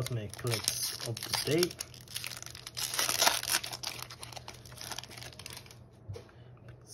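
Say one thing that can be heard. A foil wrapper crinkles and tears as it is opened.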